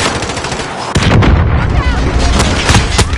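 An explosion booms with a low rumble.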